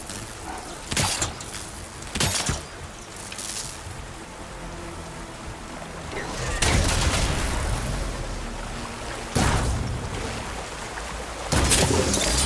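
Arrows whoosh as a bow fires in quick shots.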